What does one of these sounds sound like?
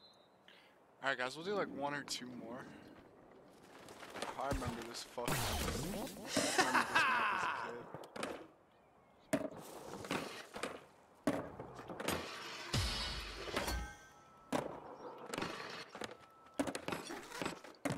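A skateboard rolls on concrete.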